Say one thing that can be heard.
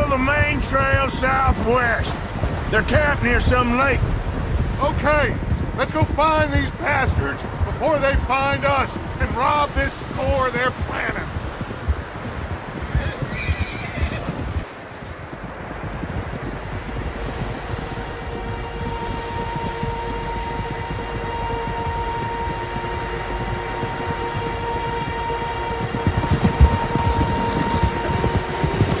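Horse hooves thud softly on snow.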